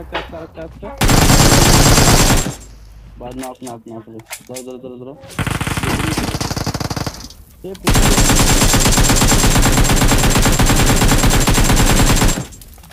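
Rapid gunfire rattles loudly in long bursts.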